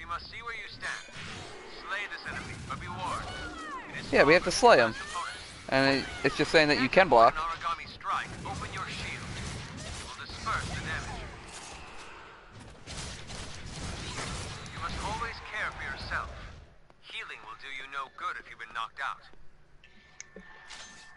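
Blades slash and clang in a fight.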